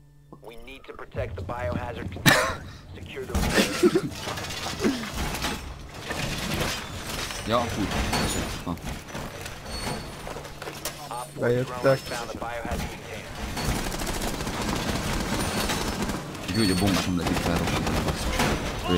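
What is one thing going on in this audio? Heavy metal panels clang and clank into place on a wall.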